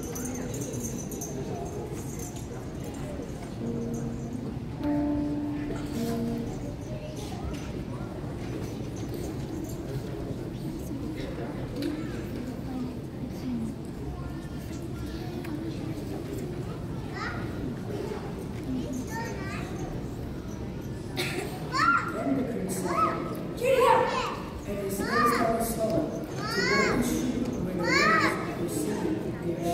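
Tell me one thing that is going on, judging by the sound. An audience murmurs quietly in a large hall.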